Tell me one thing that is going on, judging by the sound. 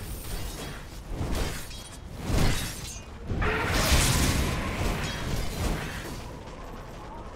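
Game spells burst and crackle in a fast battle.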